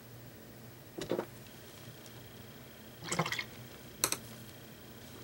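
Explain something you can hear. A stiff board knocks and scrapes as it is shifted by hand.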